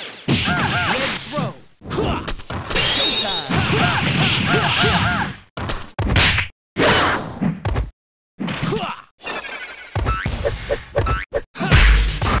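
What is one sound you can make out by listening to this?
Video game hits land with sharp thumps.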